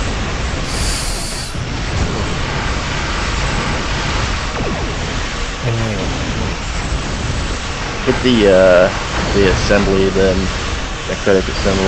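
Energy weapons zap in rapid bursts.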